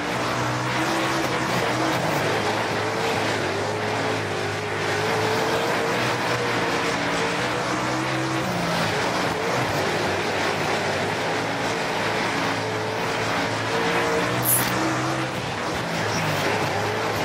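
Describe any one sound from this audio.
A race car engine roars steadily, its pitch rising and falling as it shifts gears.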